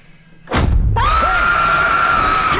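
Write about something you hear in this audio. An old woman lets out a loud, long, high shriek.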